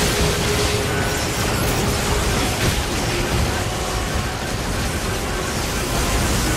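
Electric blasts crackle and burst loudly.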